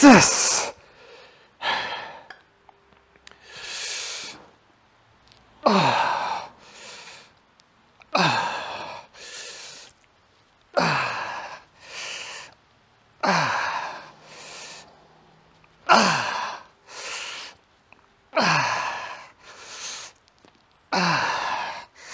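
A man grunts and exhales hard with each lift, close by.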